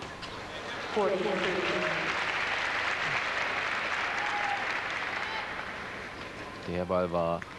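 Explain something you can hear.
A large crowd applauds, then fades away.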